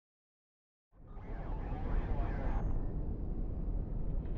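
A low rumble of wind rises suddenly and goes on.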